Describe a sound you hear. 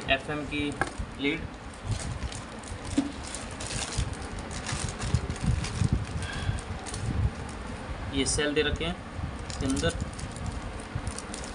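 Plastic wrapping crinkles and rustles in hands.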